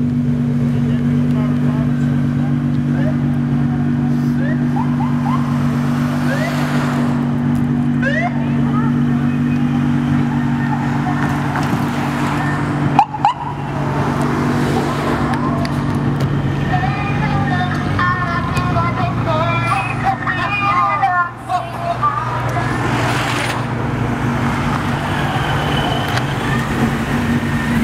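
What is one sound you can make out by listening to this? A car engine rumbles steadily close by.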